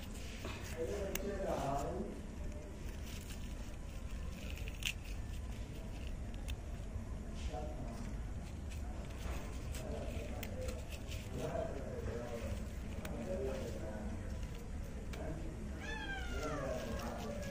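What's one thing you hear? Leaves rustle softly as a hand handles a plant stem.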